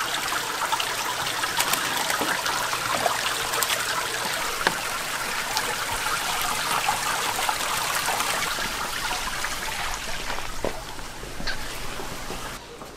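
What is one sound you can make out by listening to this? Water splashes and bubbles steadily in fish tanks.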